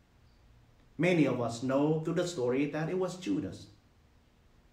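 A man speaks calmly and slowly into a close microphone.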